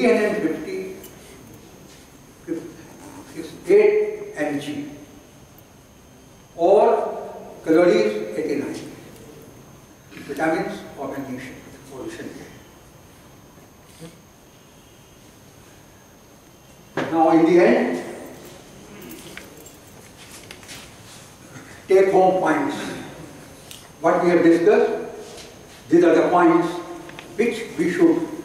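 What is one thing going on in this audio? An elderly man lectures calmly, with pauses between phrases.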